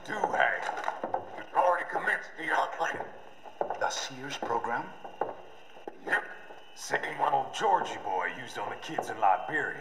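A deep-voiced older man talks with a drawl.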